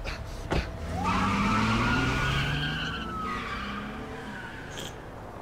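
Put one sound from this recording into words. A car engine revs as the car speeds away.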